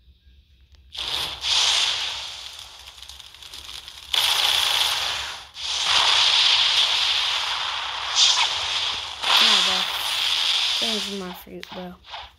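Fiery blasts roar and crackle in bursts.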